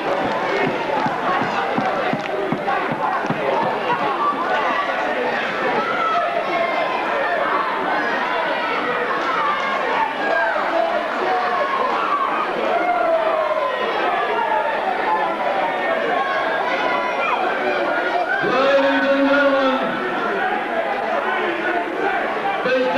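A crowd chatters and shouts loudly in a large echoing hall.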